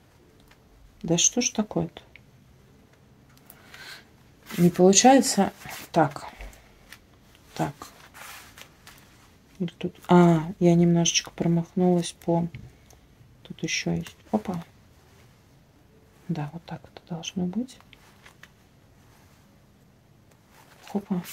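A woman talks calmly close by, in short bursts.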